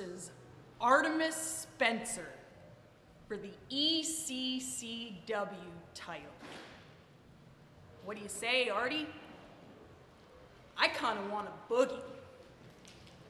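A young woman speaks with animation and shouts into a microphone, close by.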